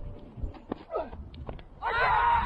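A bat strikes a cricket ball with a sharp crack.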